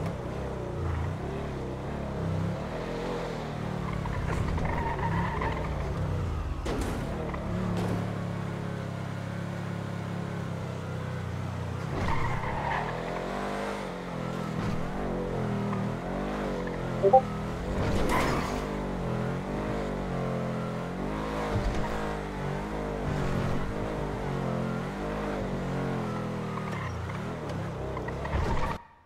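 A car engine hums and revs steadily as a car drives.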